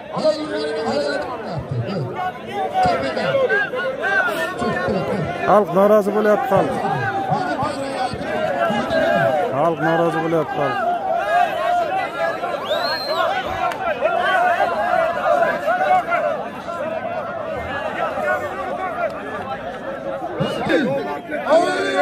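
A large outdoor crowd chatters and calls out loudly.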